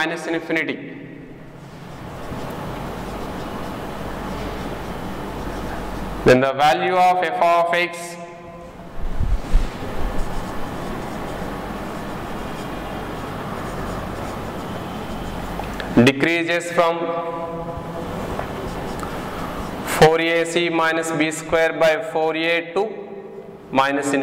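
A man speaks calmly, as if explaining, in short bursts.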